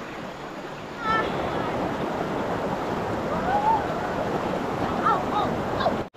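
A boy wades and splashes through a shallow stream.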